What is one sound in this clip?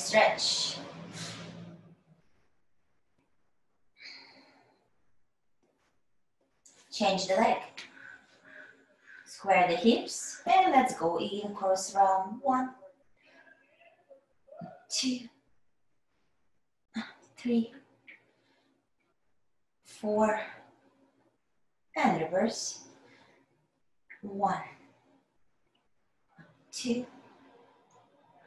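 A woman calmly gives exercise instructions in short phrases over an online call.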